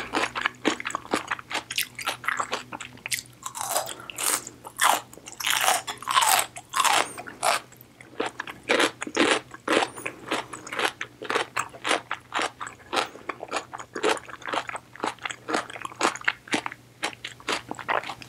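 A woman chews noodles wetly close to a microphone.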